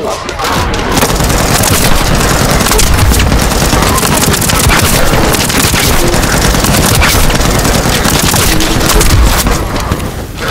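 Explosions boom with deep rumbling.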